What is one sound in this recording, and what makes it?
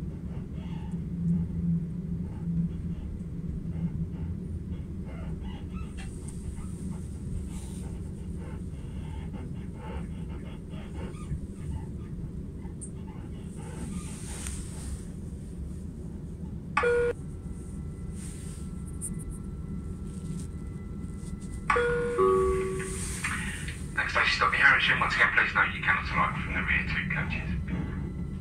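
A train rumbles and rattles steadily along the track from inside a carriage.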